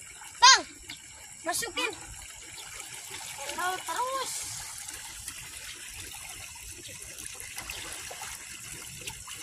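Water babbles steadily along a stream.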